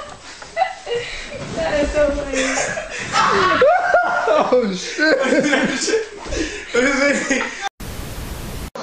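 A young man laughs and talks excitedly nearby.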